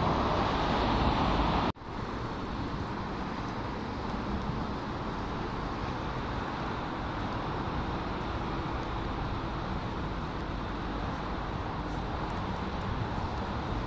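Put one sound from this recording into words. City traffic hums steadily in the distance.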